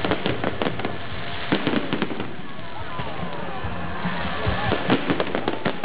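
Fireworks whistle as they shoot upward.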